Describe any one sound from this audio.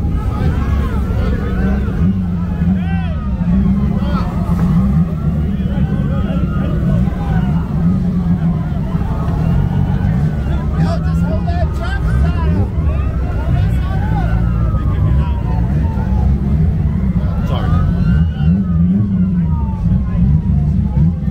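A crowd of young people chatters and calls out outdoors.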